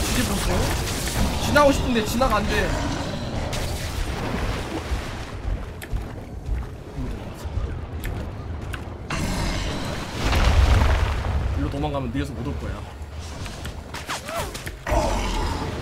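Water splashes as a large creature wades through it.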